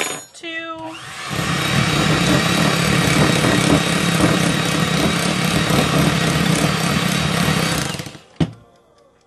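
An electric hand mixer whirs loudly, beating batter in a bowl.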